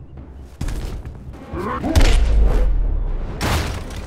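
An energy blast crackles and roars.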